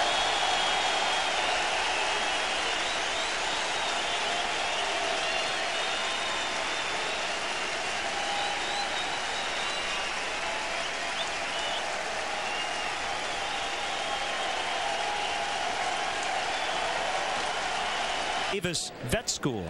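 A large crowd claps and applauds steadily.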